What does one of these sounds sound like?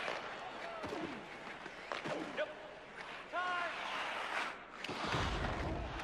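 Ice skates scrape and glide across ice.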